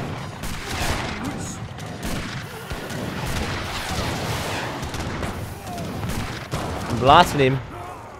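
Musket shots crack rapidly in a busy battle.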